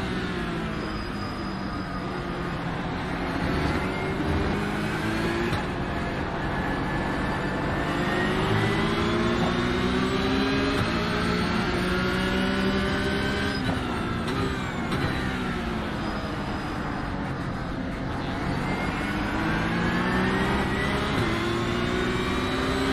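A racing car engine revs hard, rising in pitch and dropping with each gear change.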